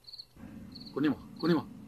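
A man groans and cries out close by.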